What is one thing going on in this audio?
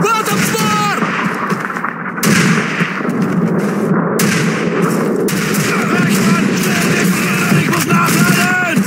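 Footsteps crunch through rubble and snow.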